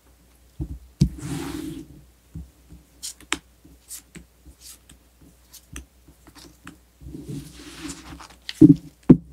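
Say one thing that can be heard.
Playing cards slide and rustle across a cloth.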